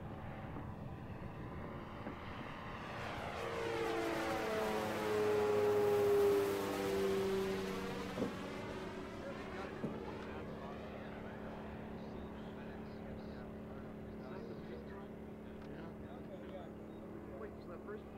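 A propeller plane's engine drones overhead, swelling loud as it passes close and then fading into the distance.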